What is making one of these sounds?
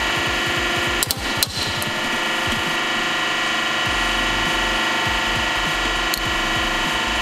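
Metal creaks and pops as it is crushed.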